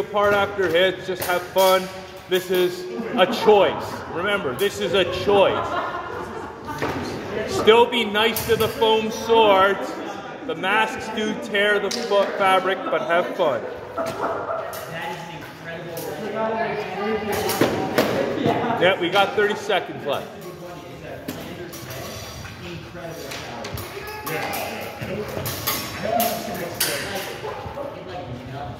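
Wooden practice swords clack together in quick bursts.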